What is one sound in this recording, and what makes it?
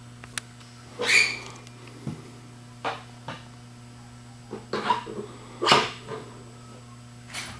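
Metal machine parts clank and click as a man handles them.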